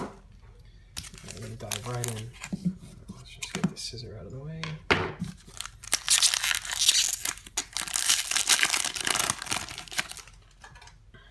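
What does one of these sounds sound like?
Plastic wrapping crinkles and rustles as hands tear open a pack.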